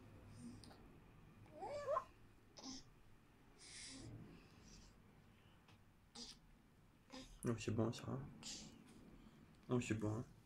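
A baby sucks and gulps from a bottle.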